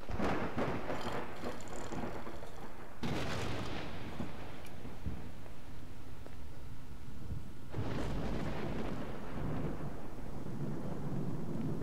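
A fire crackles in a metal barrel.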